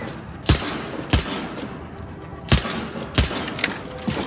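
A rifle fires sharp shots with a short echo.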